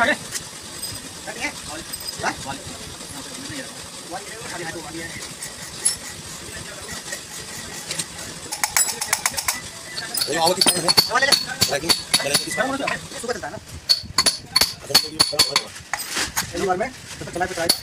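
Metal tools clink and tap against an engine part.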